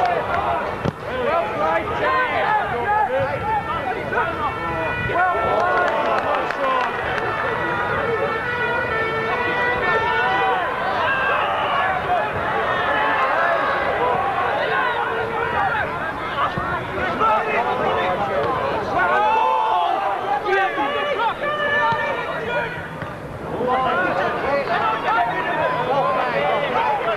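A crowd of spectators shouts and chatters outdoors.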